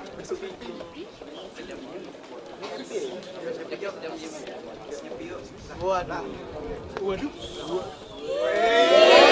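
An audience murmurs and calls out in a large hall.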